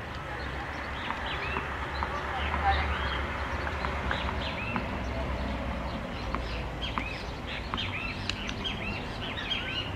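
Tennis rackets strike a ball back and forth outdoors.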